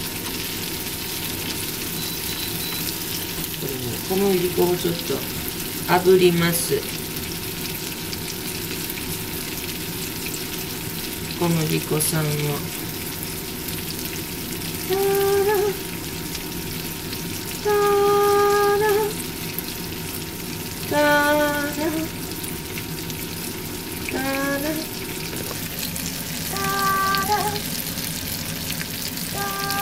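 Food sizzles steadily in a frying pan.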